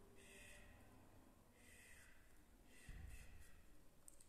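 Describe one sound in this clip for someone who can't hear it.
A soft brush sweeps and rustles against the microphone.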